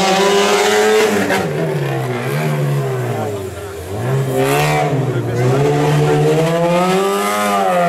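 A rally car engine roars loudly, revving up and down as the car speeds past.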